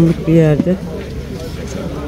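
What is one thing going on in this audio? Ceramic plates clink softly as they are handled.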